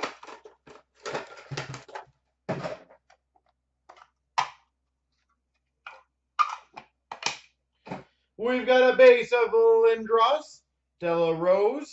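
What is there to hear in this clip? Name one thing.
Plastic card cases clack and rattle as they are handled.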